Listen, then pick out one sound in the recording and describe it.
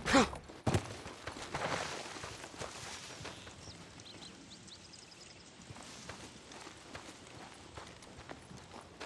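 Footsteps crunch through grass and over dry dirt.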